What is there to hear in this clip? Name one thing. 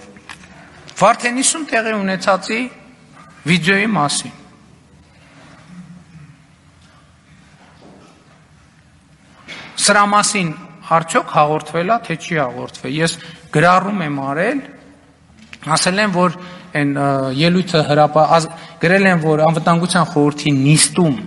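A middle-aged man speaks forcefully into a microphone.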